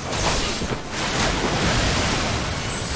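A huge wave of water rushes and roars.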